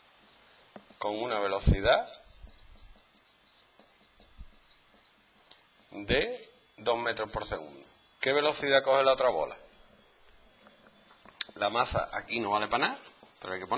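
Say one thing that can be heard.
A man speaks calmly in short phrases, as if explaining.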